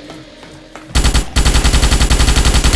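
A gun fires rapidly in a loud burst.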